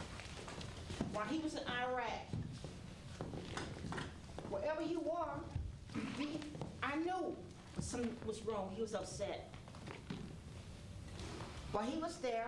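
A woman speaks loudly and with animation.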